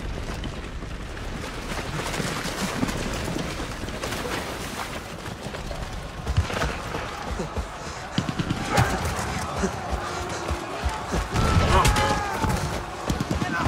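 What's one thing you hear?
Many soldiers run, boots splashing through mud.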